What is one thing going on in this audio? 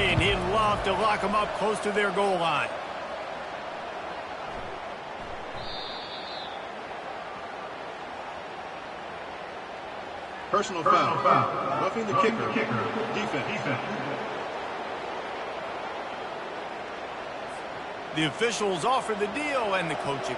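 A large crowd cheers and roars steadily in a stadium.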